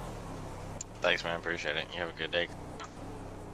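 A man talks calmly through a microphone.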